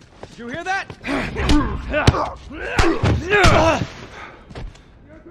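A scuffle thuds with heavy blows.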